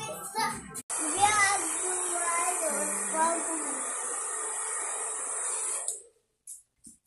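A hair dryer blows with a steady whoosh.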